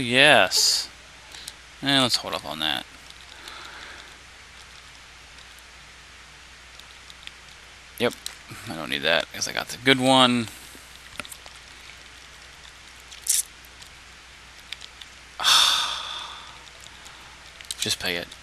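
Short electronic blips click as menu selections change.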